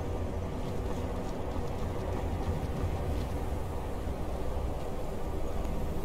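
Wind blows steadily with a low rumble.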